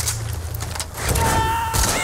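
A gun fires a shot outdoors.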